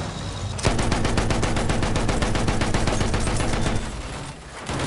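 A machine gun fires a rapid, loud burst.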